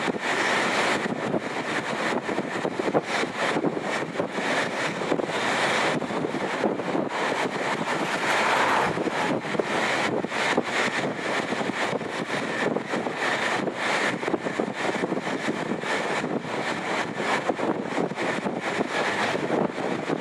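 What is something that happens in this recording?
Cars and trucks rush past on a motorway with a steady roar of tyres.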